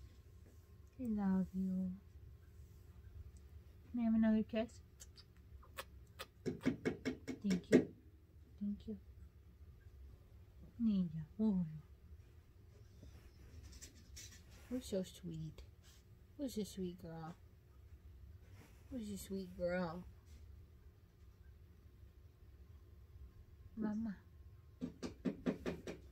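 A young woman talks playfully in a high, cooing voice close by.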